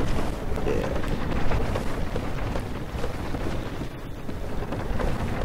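Armored footsteps clank on wooden planks.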